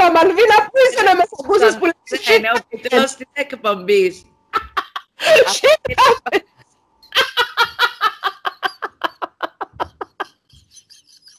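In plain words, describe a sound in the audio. A woman laughs loudly over an online call.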